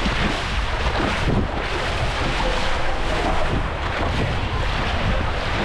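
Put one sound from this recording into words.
Water rushes and splashes loudly close by.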